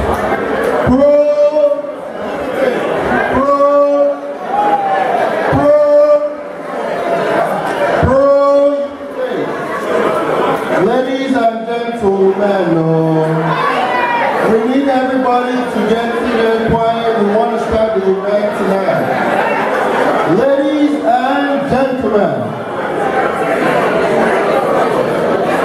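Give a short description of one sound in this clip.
A man sings loudly into a microphone through a loudspeaker in an echoing hall.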